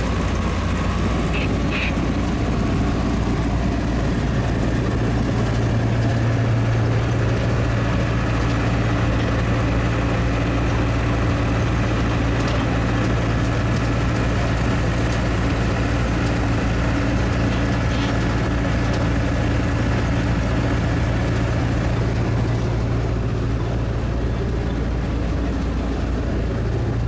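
A machine engine drones steadily close by.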